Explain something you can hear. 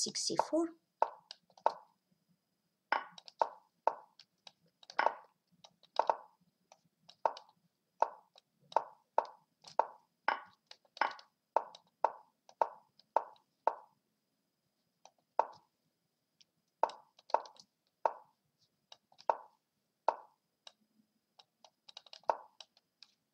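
Short soft clicks sound from a chess program as pieces move, quickly and unevenly.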